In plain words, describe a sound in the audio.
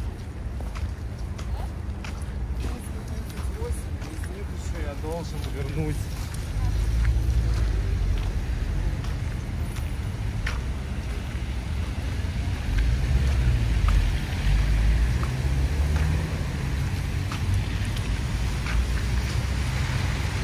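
Footsteps crunch on icy pavement.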